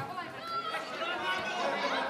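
Spectators chatter and call out nearby.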